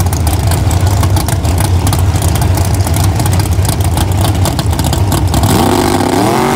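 A drag racing engine rumbles loudly and crackles at idle close by.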